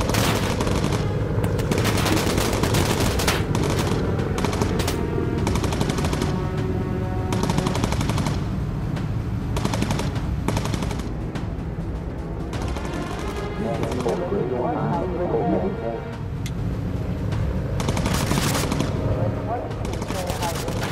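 The propeller engines of a four-engine bomber drone.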